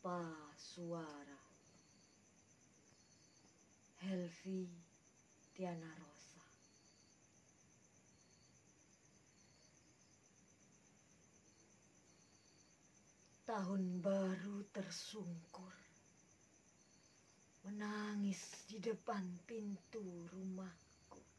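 A young woman recites a poem expressively close to a microphone, with long pauses.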